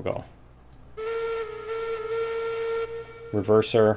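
A steam whistle blows a long steady note.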